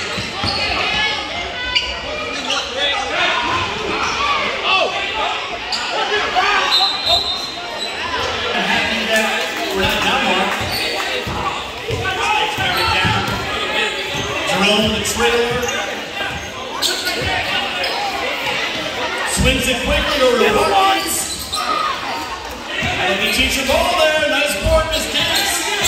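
Players and spectators shout and chatter in a large echoing gym.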